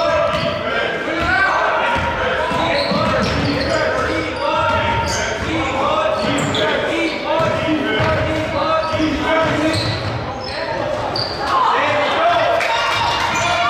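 A basketball bounces on the court with echoing thuds.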